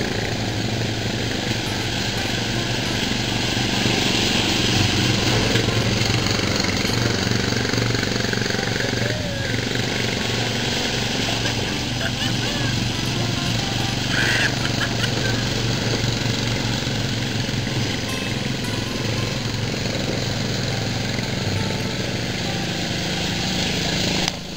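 Tyres churn and splash through wet mud.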